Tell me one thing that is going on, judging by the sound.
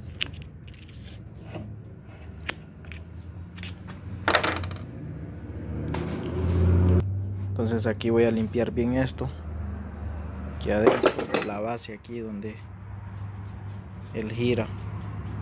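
Metal parts clink and scrape as they are handled.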